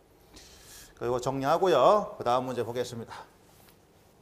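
A man speaks calmly and clearly, as if teaching.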